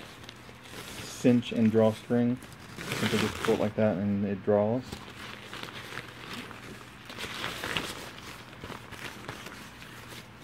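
A fabric bag rustles as it is handled.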